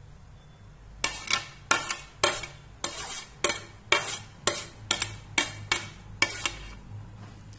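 A metal ladle taps and scrapes against a plate in a rapid run of clinks.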